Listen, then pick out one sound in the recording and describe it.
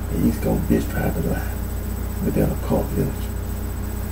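A man speaks calmly into a microphone close by.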